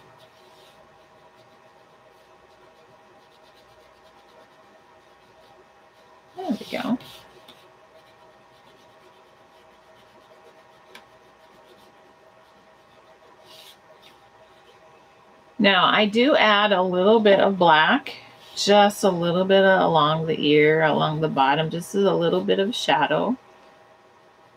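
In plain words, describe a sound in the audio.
A crayon scratches softly on paper.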